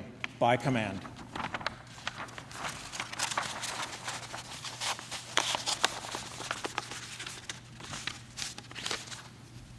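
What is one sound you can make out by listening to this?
Paper rustles and crinkles as a scroll is rolled up.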